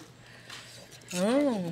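A young woman hums with pleasure while chewing.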